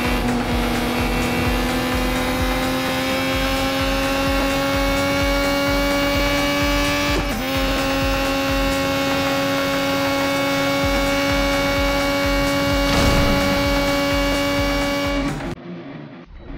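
A racing car engine screams at high revs, its pitch slowly climbing.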